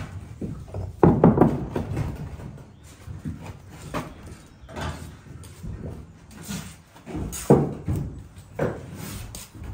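A brick thuds down onto a mortar bed.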